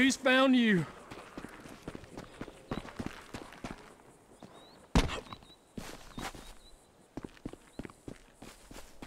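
Footsteps run over dirt and rock.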